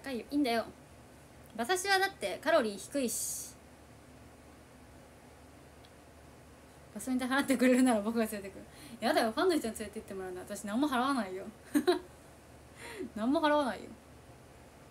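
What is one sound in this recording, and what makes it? A young woman talks casually and cheerfully close to a microphone, with pauses.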